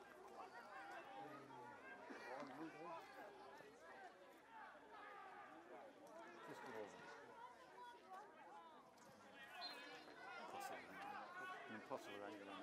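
Men call out and talk across an open field, outdoors.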